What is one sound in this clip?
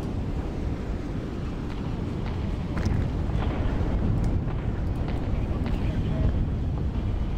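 Explosions boom and rumble with a deep roar.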